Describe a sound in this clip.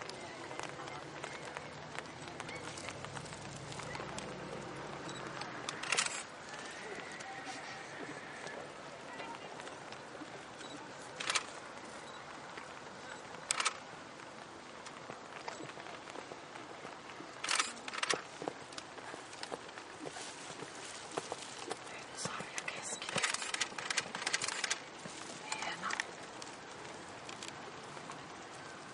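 A horse's hooves thud on soft sand.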